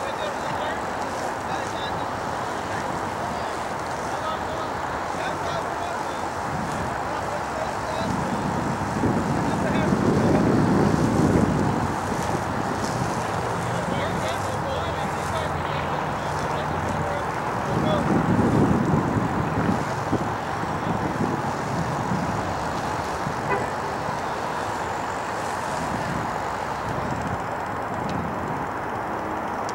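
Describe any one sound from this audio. Horses' hooves thud softly on grass in the distance.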